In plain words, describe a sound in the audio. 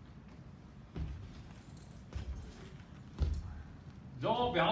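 Footsteps thud on a padded floor.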